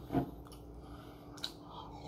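A young man sips from a mug.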